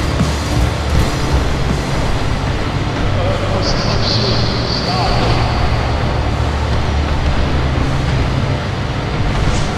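Strong wind roars steadily in a blizzard.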